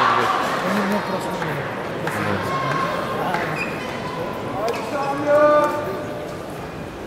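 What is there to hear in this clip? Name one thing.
A crowd cheers and shouts in a large hall, then quiets down.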